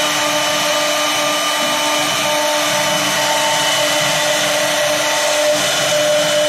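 A machine spindle whines steadily as it routs wood.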